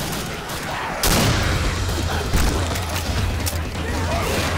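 A rifle fires short, sharp bursts of shots.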